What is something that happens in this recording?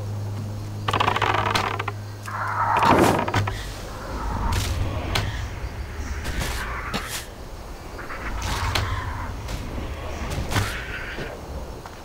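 A bow twangs as arrows are loosed, again and again.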